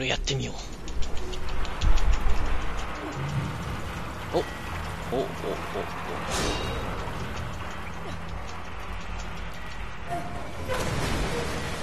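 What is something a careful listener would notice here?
A wooden wheel creaks and rattles as it is turned.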